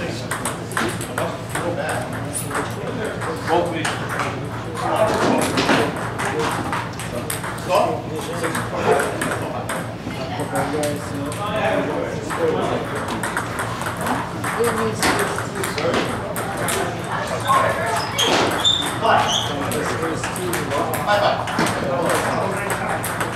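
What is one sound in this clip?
Men talk in the background of a large echoing hall.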